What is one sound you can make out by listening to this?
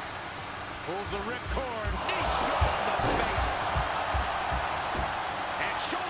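Bodies slam heavily onto a wrestling ring mat with deep thuds.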